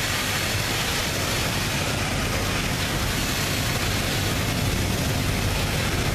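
A loaded freight train of coal hopper cars rumbles past close by.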